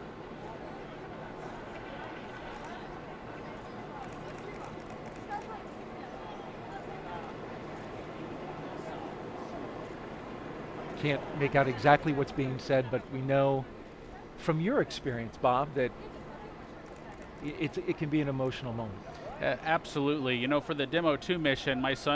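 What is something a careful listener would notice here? A crowd murmurs quietly outdoors.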